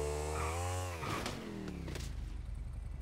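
A motorcycle crashes with a loud thud.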